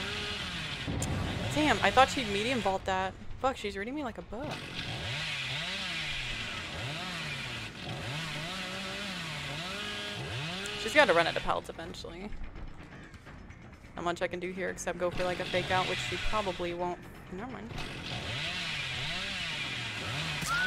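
A chainsaw idles and revs with a wavering drone.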